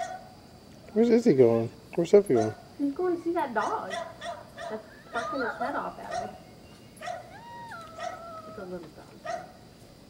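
A young child talks and calls out excitedly nearby.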